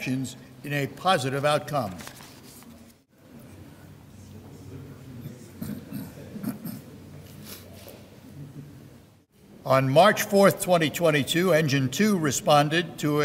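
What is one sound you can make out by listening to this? An elderly man speaks through a microphone, reading out calmly.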